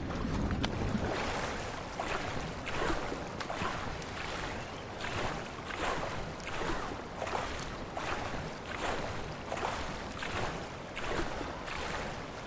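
Water splashes with steady swimming strokes.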